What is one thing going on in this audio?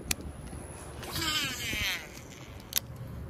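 A fishing line whizzes out from a reel during a cast.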